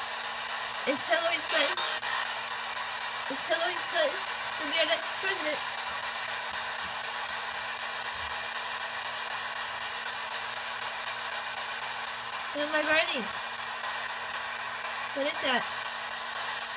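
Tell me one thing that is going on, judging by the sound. Brief voice fragments burst from a small radio speaker.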